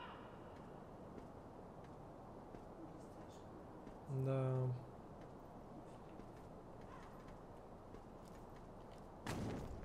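Footsteps patter on roof tiles.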